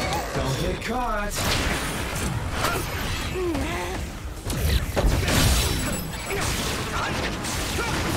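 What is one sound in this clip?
Heavy blasts boom and crackle.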